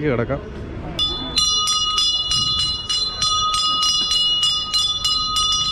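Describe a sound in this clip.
A hand bell rings rapidly and steadily.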